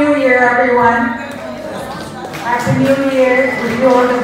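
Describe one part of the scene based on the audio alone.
A woman sings into a microphone, heard through loudspeakers in a large room.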